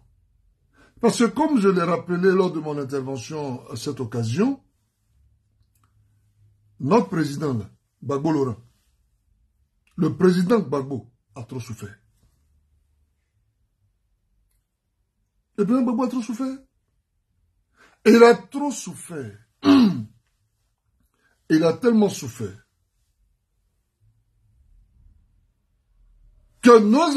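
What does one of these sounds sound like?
A man speaks calmly and close to a microphone, with pauses between phrases.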